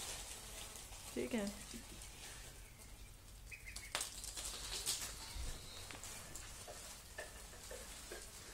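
Small webbed feet patter on a wooden floor.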